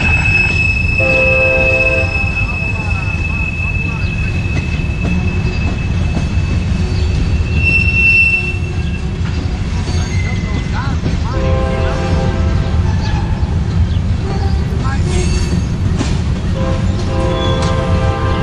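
Train wheels squeal in short bursts on the rails.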